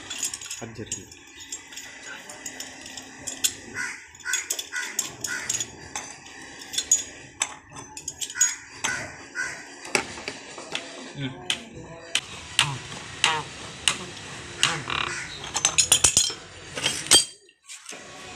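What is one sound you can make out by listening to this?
Metal pipe wrenches clink and scrape against metal fittings.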